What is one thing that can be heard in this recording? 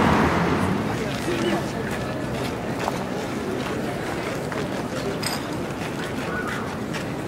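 Footsteps scuff on gravel close by.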